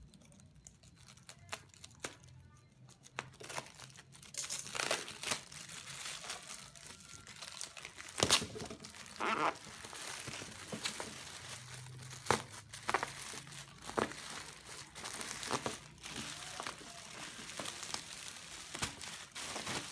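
A plastic bag rustles and crinkles as hands pull at it.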